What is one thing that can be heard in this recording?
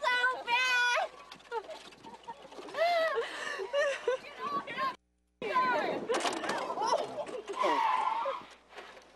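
A young woman screams and shrieks loudly.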